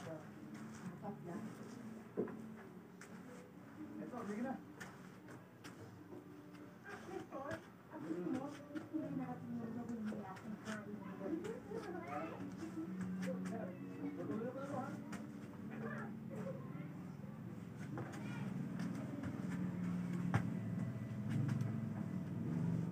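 Sneakers step softly on a foam floor mat.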